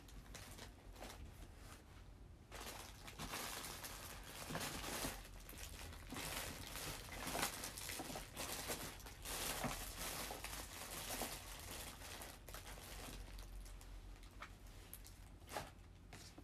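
Hair rustles and brushes against a microphone close up.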